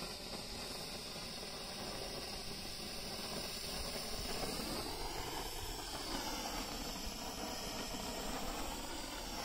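A handheld firework fizzes and hisses steadily up close.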